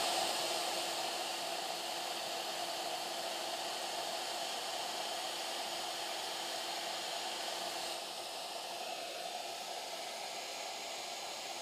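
A machine's fan whirs steadily, dropping slightly in level partway through.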